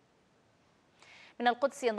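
A woman speaks clearly and steadily into a microphone.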